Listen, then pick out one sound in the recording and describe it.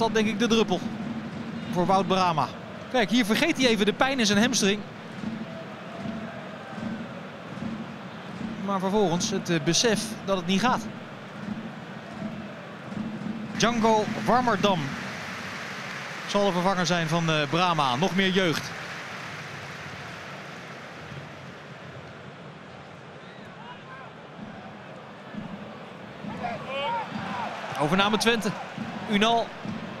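A large stadium crowd murmurs and cheers steadily outdoors.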